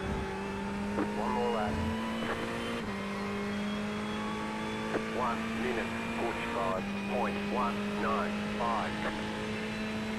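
Tyres squeal briefly through corners.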